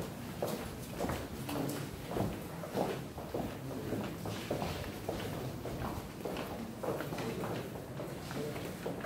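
Men talk quietly nearby in a group.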